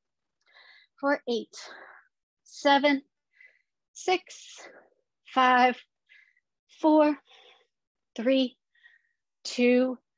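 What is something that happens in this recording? A woman gives instructions in short spoken phrases, heard through an online call.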